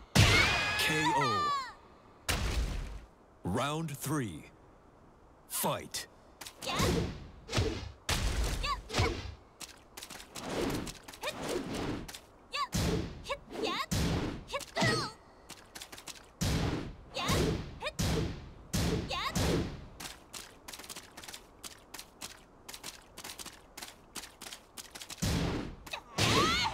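Punches and kicks land with sharp smacking hits.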